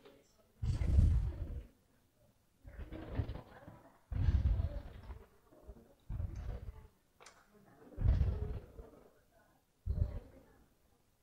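Children's footsteps thud on a hard floor.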